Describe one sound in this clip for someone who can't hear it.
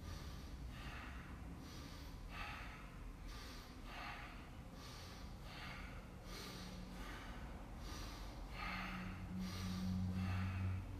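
A man breathes in and out sharply in a quick, steady rhythm.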